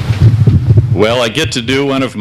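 An older man speaks into a microphone.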